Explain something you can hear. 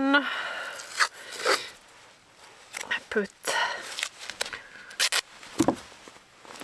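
Adhesive tape rips as it is pulled from a roll and torn.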